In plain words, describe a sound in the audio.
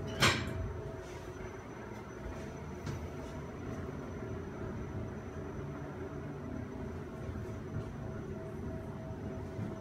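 An elevator hums steadily as it moves between floors.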